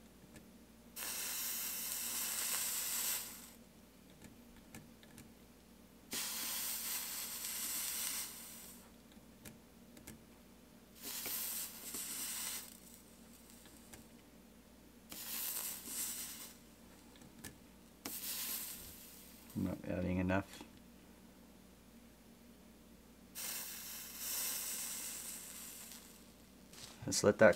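A soldering iron sizzles and hisses in short bursts, with quiet pauses between them.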